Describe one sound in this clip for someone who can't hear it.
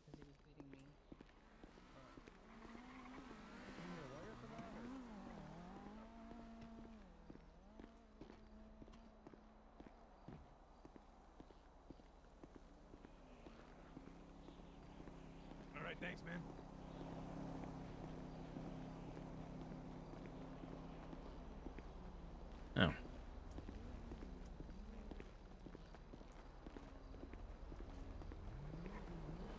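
Footsteps walk on hard pavement.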